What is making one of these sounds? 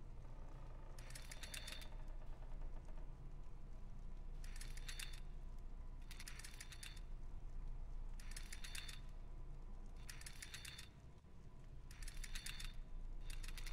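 A metal mechanism clicks and rattles as its dials turn.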